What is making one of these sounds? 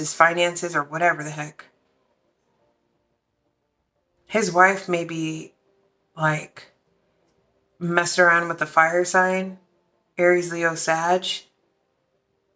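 A young woman speaks softly and calmly, close to a microphone, in short phrases with pauses.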